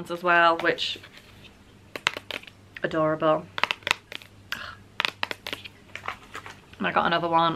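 Plastic packaging crinkles and taps in hands.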